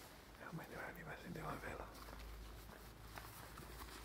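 A bag rustles and crinkles nearby.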